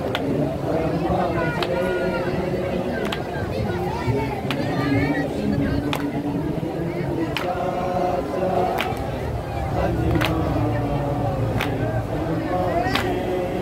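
A crowd of men chants together loudly and close by.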